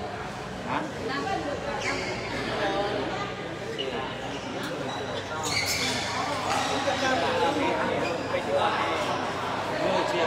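Several men talk and call out in a large echoing hall.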